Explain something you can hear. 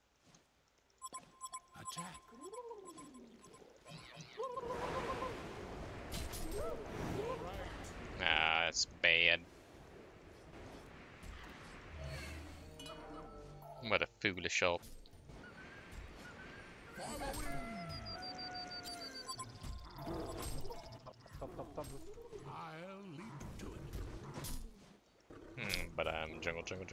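Fantasy battle effects whoosh, blast and clash in a video game.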